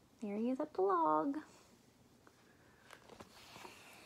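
Book pages rustle and turn.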